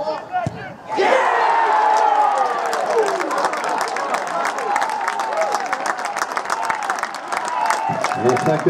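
A crowd cheers loudly and then slowly dies down.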